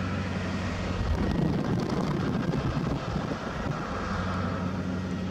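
Wind rushes loudly through an open car window.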